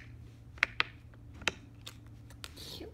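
A plastic toy taps against a wooden floor.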